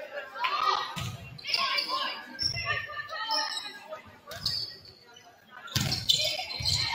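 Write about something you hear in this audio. A volleyball is struck with sharp thumps in a large echoing gym.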